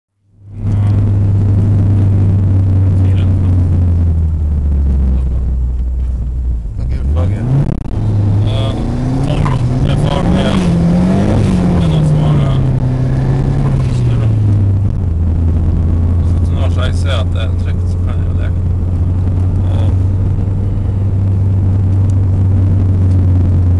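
A car engine hums steadily from inside the car, its pitch rising and falling as the driver shifts gears.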